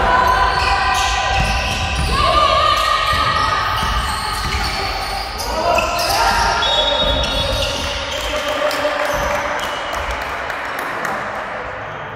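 Sneakers squeak on a hard floor in a large echoing hall.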